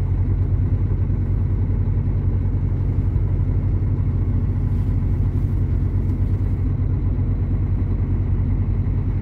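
A large diesel truck engine idles with a steady low rumble close by.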